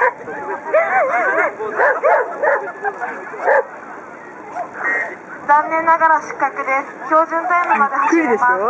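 A man calls out commands to a dog with animation, outdoors.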